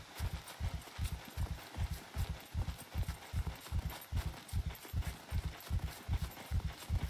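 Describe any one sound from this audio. Footsteps crunch through deep snow at a steady walking pace.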